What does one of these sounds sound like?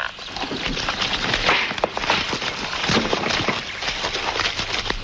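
A man thuds heavily onto the ground.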